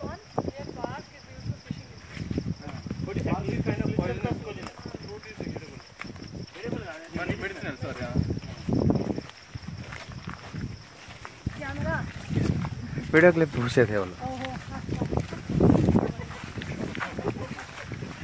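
Several men and women talk nearby outdoors.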